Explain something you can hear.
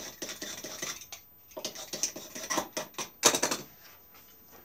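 A hand tool scrapes and rasps against wood in quick strokes.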